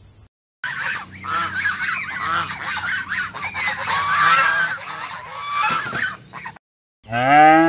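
A goose honks and cackles repeatedly.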